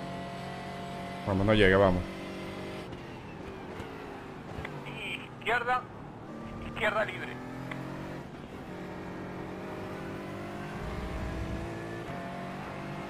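A racing car engine roars and shifts through gears.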